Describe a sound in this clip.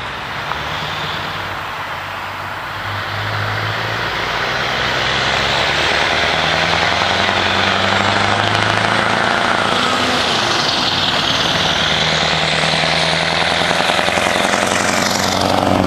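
A heavy truck's engine rumbles as it approaches and grows louder.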